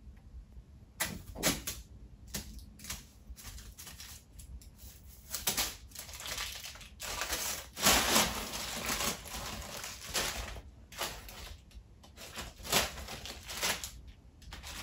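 A kitten bats paper around, and the paper rustles and crinkles.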